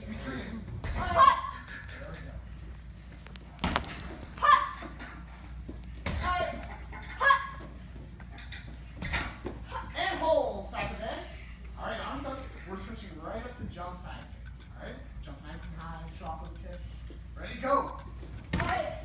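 A child gives sharp martial-arts shouts with strikes.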